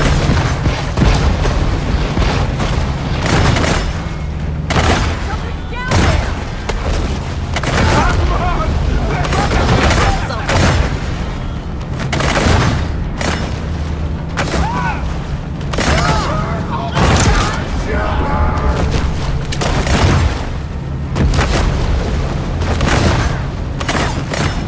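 Boat engines drone steadily.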